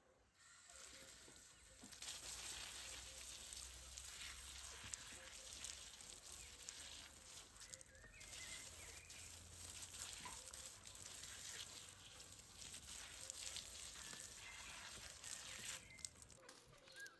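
A hose nozzle sprays water in a steady hiss.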